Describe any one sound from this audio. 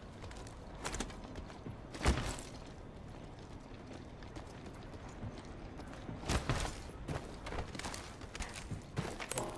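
Heavy footsteps thud quickly on hard ground.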